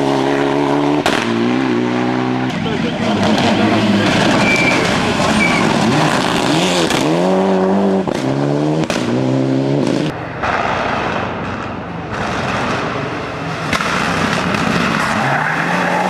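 A rally car engine roars and revs hard, rising and falling in pitch as the gears change.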